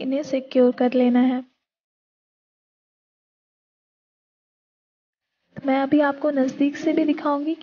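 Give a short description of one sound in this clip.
A woman speaks close by, with animation.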